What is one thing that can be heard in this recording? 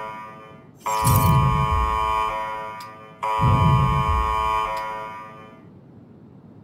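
A game notification chime rings out twice, each time with a low thud, then fades slowly.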